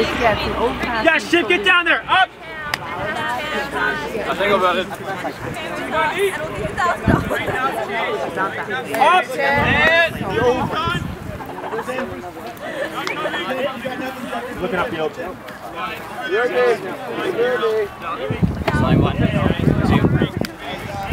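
Young men talk and shout to each other nearby, outdoors.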